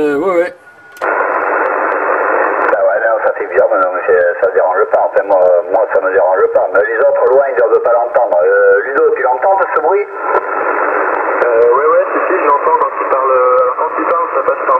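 A man talks through a crackly radio loudspeaker.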